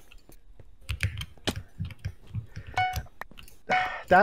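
Menu buttons click in quick succession.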